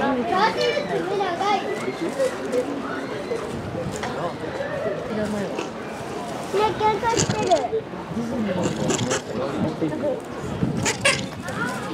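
Animals rustle and scratch in dry wood shavings.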